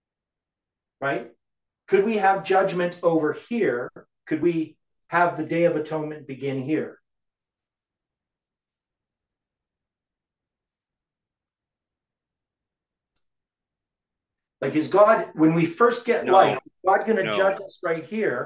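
An elderly man speaks calmly close to the microphone, explaining with pauses.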